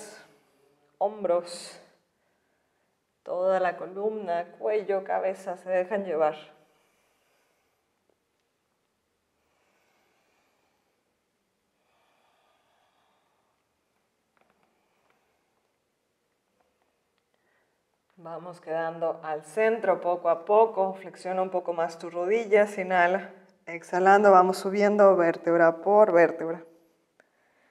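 A woman speaks calmly, giving instructions.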